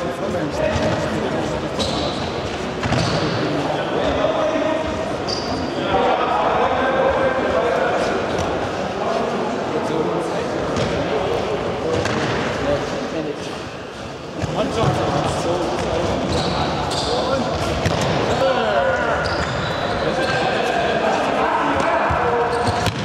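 A ball is kicked with a thump.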